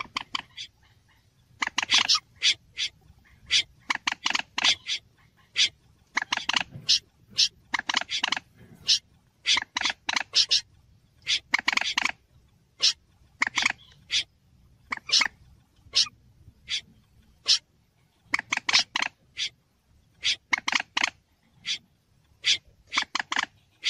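A bird calls with loud, sharp, repeated clucks in quick bursts.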